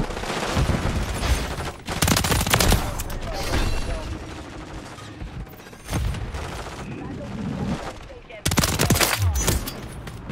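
Rapid gunfire bursts out loudly in a video game.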